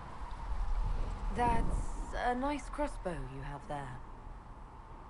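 A young woman speaks flatly, close by.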